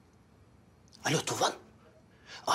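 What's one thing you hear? A man speaks loudly into a phone nearby.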